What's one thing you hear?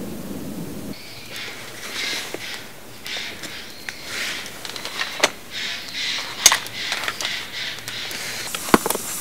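A campfire crackles and pops outdoors.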